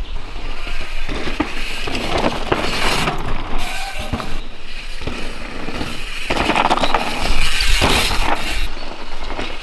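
A bike chain and frame rattle over bumps.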